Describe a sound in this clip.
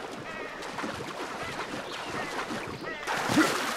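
Water splashes as a swimmer paddles through it.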